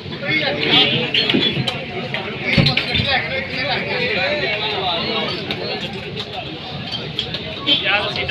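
A whisk clatters rapidly against a metal bowl.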